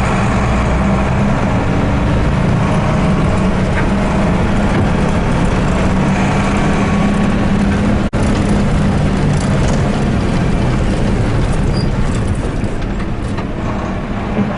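A bus body rattles and shakes over a rough gravel road.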